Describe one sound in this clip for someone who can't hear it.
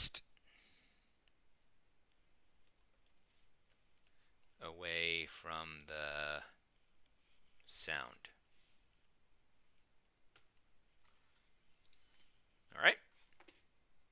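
Keys clatter on a keyboard as someone types.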